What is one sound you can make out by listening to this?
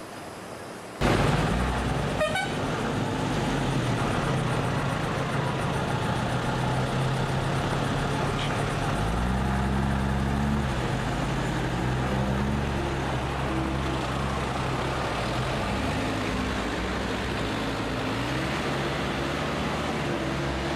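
Tyres crunch and rumble over a rough gravel road.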